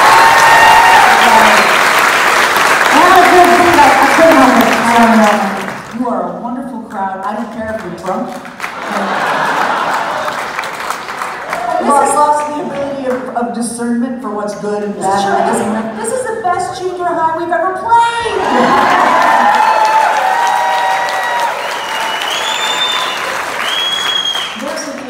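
A man sings through a microphone in a large hall.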